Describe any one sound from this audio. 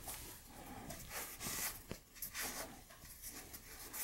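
A cloth rubs against metal.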